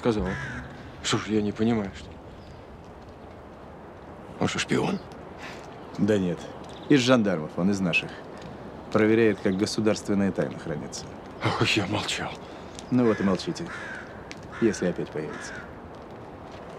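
Another man speaks tensely up close.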